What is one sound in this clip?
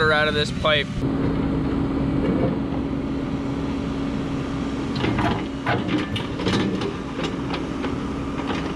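An excavator engine runs with a steady hum.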